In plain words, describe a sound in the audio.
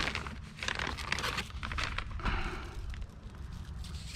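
A plastic plug clicks and rattles in someone's hands.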